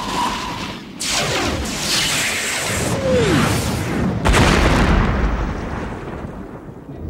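A large spaceship rumbles as it passes.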